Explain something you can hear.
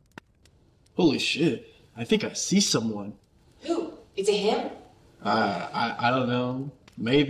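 A young man speaks close by with feeling.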